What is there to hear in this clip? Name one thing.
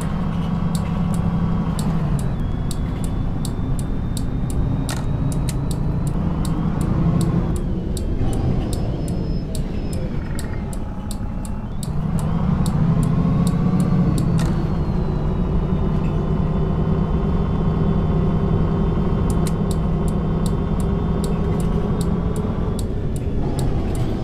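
A bus engine hums and whines, rising and falling in pitch as the bus speeds up and slows down.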